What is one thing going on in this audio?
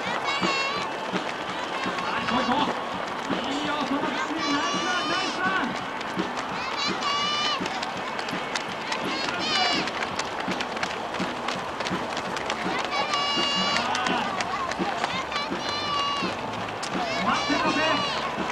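Many runners' footsteps patter on pavement.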